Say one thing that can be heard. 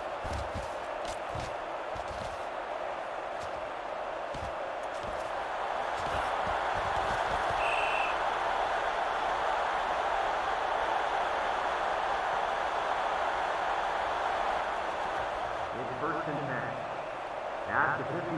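A large stadium crowd roars, swelling as a play goes on.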